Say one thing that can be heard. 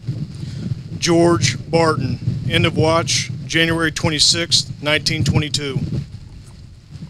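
A man speaks calmly over a loudspeaker outdoors.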